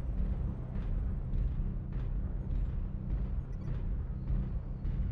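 Heavy metal footsteps thud at an even pace.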